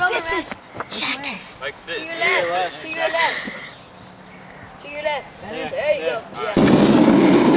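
A young boy laughs close by.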